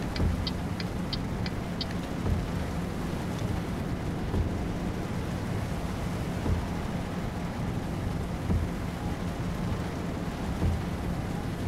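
Rain patters on a windshield.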